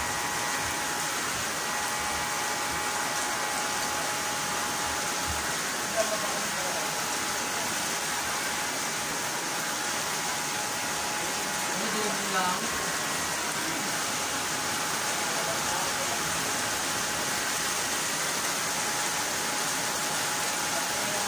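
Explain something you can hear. Electric hair clippers buzz steadily up close.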